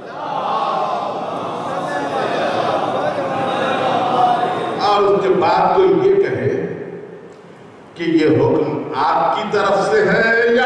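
An elderly man speaks steadily into a microphone, heard through a loudspeaker in a reverberant hall.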